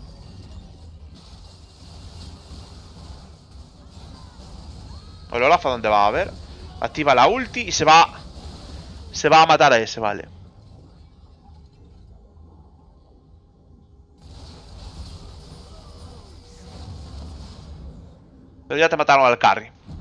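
Magic spells crackle and whoosh during a video game battle.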